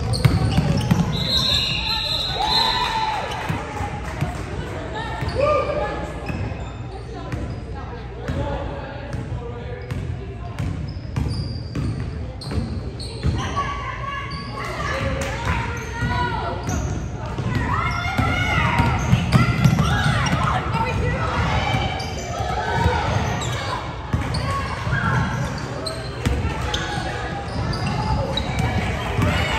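Young women call out to each other during play.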